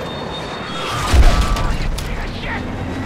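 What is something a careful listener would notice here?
A shell explodes with a loud boom close by.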